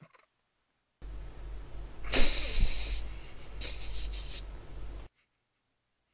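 A man groans loudly in dismay close by.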